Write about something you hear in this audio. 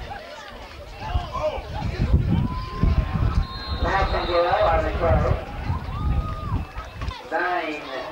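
Spectators close by shout and cheer outdoors.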